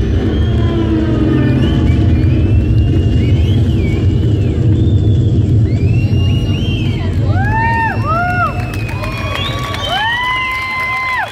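A deep heavy bass pounds steadily, then drops out.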